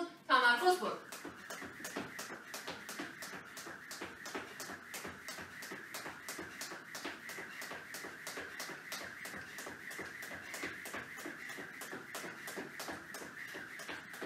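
A jump rope slaps the floor quickly and steadily.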